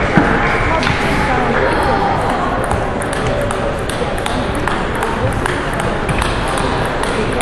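Table tennis balls click rapidly on paddles and tables in a large echoing hall.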